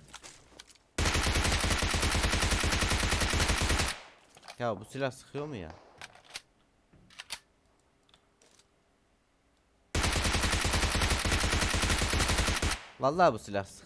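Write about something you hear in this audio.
Rapid automatic gunfire rattles in long bursts.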